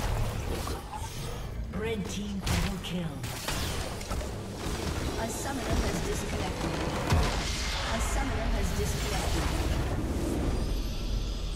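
Spell effects crackle and blast in a video game battle.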